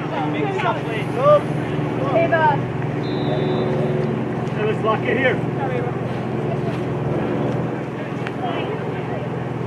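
Young women shout and call to each other across an open field outdoors.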